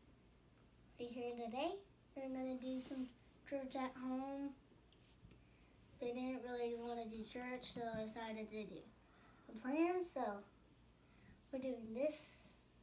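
A young boy speaks nearby in a high, sing-song voice.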